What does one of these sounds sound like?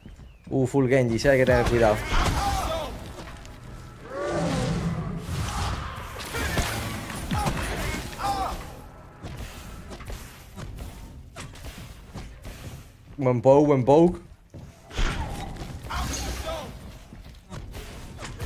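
Magic blasts and whooshes sound in a video game fight.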